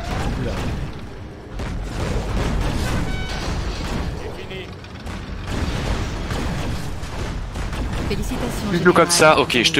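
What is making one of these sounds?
Tanks fire rapid shots back and forth.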